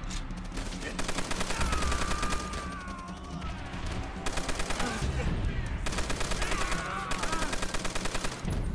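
Rapid machine gun fire rattles in bursts.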